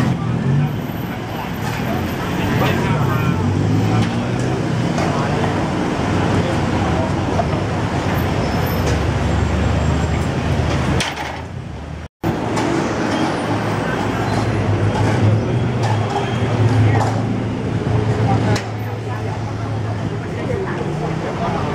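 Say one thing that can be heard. A motorbike engine passes by.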